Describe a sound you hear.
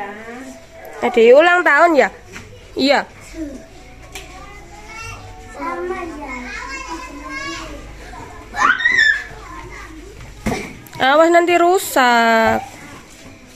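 A young child squeals in a high voice.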